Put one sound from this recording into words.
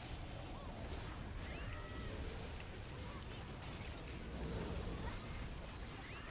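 Magic spells crackle and boom in a fantasy battle.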